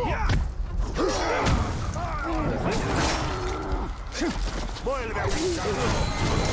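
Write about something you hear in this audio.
Swords clang and strike in a fierce fight.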